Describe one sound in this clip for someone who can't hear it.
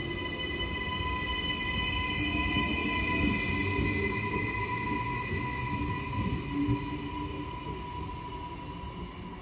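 An electric train rumbles as it pulls away and fades into the distance.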